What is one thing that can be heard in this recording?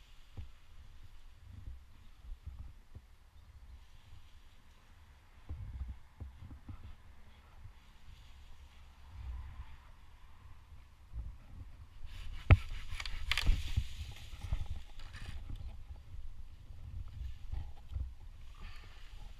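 Branches rustle and creak as a hand grips them.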